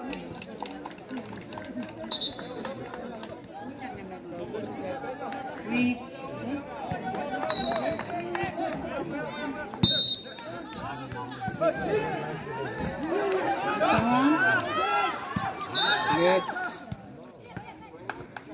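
A crowd of young people shouts and cheers outdoors.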